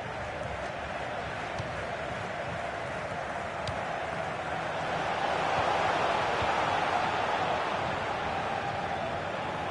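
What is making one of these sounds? A large stadium crowd roars steadily, swelling louder midway.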